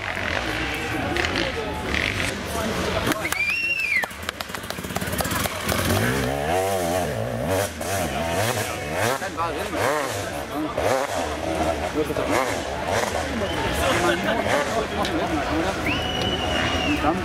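A dirt bike engine revs hard and snarls up a slope nearby.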